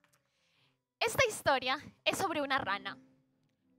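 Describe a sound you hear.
A young woman speaks brightly and with animation, close by.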